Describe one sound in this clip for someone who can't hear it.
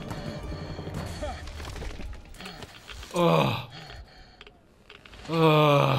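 A blade stabs into flesh with a wet thud.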